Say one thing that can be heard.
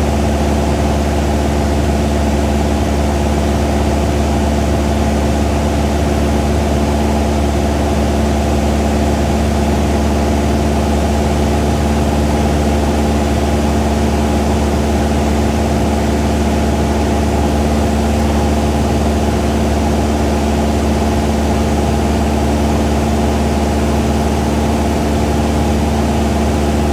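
A small propeller plane's engine drones loudly and steadily from inside the cabin.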